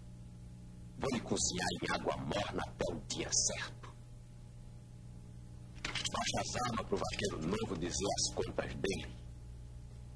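A man speaks loudly and firmly, close by, with pauses.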